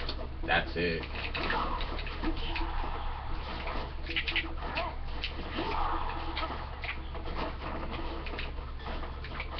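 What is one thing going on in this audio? Game music plays through a television speaker.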